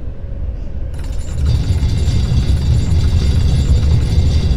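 A heavy stone door rumbles as it grinds open.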